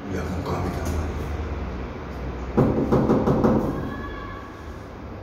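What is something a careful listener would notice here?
A doorbell rings.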